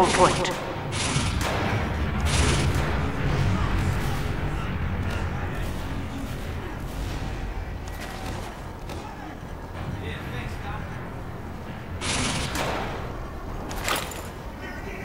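A rifle fires sharp, loud shots now and then.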